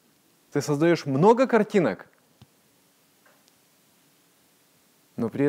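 A middle-aged man speaks calmly and clearly into a nearby microphone, with pauses.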